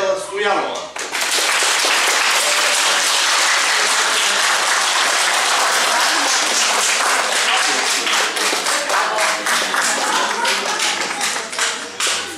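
A crowd applauds with steady clapping.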